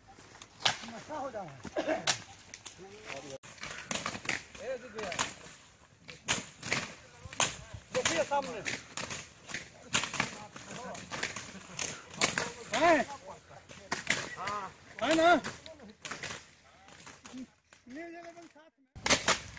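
Men talk and call out outdoors.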